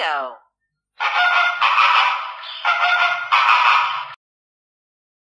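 A flamingo honks loudly in quick bursts.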